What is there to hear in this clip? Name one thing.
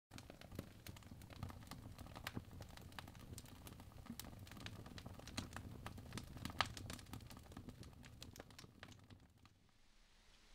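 A wood fire crackles and pops.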